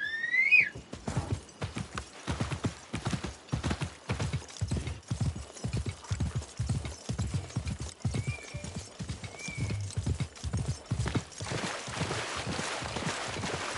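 Hooves gallop rapidly on a dirt track.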